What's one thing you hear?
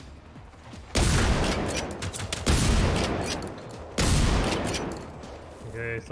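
A shotgun fires several loud blasts.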